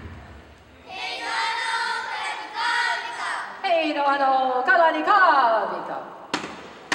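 A young girl chants loudly in a high voice.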